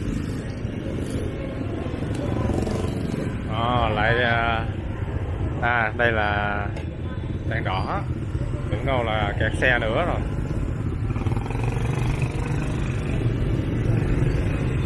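Motorbike engines rumble steadily in busy street traffic close by.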